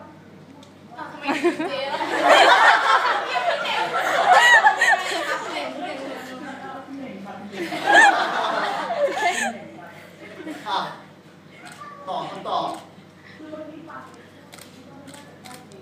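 A young woman and a young man laugh loudly nearby.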